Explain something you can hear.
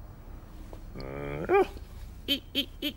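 A man makes a rising, squeaky vocal sound and short squeals.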